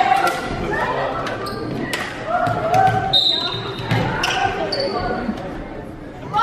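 A volleyball is hit with sharp slaps.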